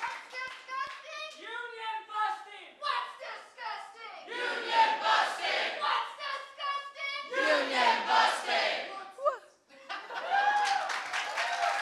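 A woman speaks with animation into a microphone.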